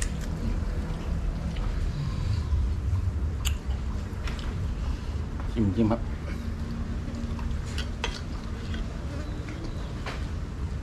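A man talks close by, casually.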